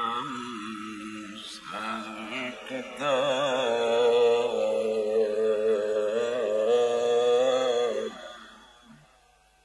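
An elderly man chants melodiously into a microphone, his voice carried over a loudspeaker with reverberation.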